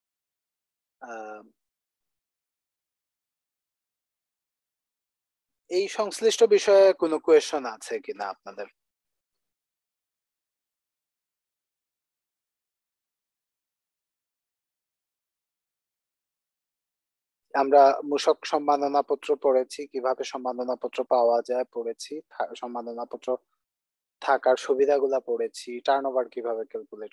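A man speaks calmly over an online call, explaining at a steady pace.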